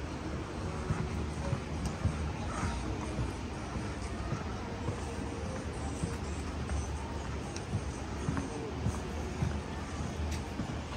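Footsteps tap on a wooden boardwalk outdoors.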